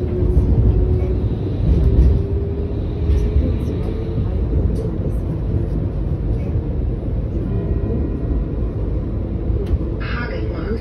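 A tram rumbles and hums steadily as it rides along.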